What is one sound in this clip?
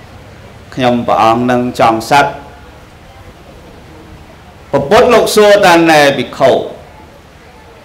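A man speaks calmly into a microphone in short phrases.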